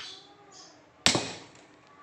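A knife blade stabs into a taped bundle with a sharp thud.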